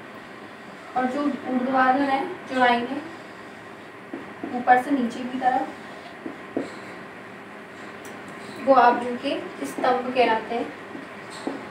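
A young woman speaks calmly, explaining.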